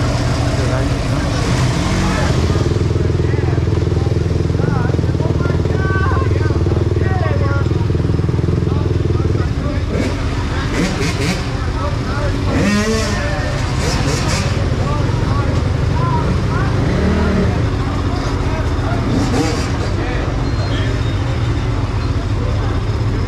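Dirt bike engines idle and rumble loudly close by.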